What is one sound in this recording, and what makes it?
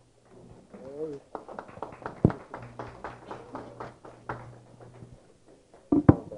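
A group of people applaud.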